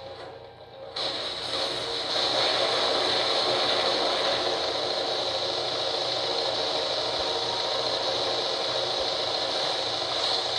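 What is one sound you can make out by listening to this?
Jet thrusters roar loudly and steadily.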